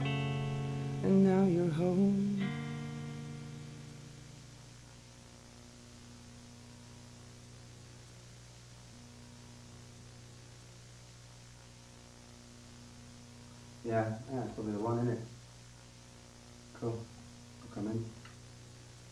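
A young man sings in short bursts close to a microphone.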